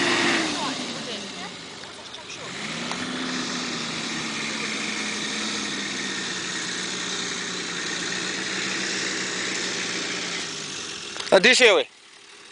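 A four-wheel-drive SUV's engine labors as it climbs a sand dune.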